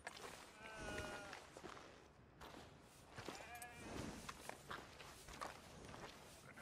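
Boots tread on wet, muddy ground.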